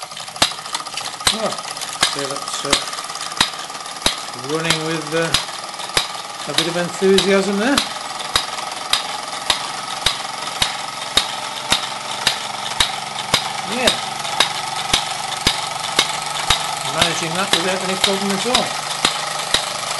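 Belts and pulleys whir steadily.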